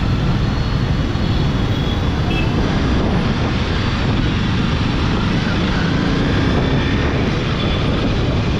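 A motorcycle engine hums steadily up close while riding.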